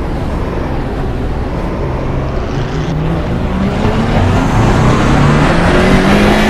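Other race cars roar nearby.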